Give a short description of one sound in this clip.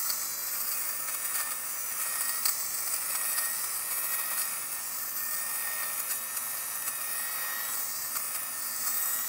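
A small electric fabric shaver whirs steadily.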